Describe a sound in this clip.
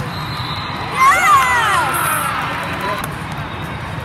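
Young women cheer and shout loudly.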